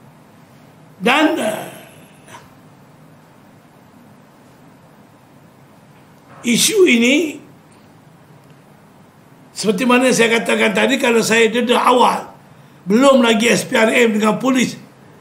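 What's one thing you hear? An elderly man speaks forcefully into microphones close by, in bursts with pauses.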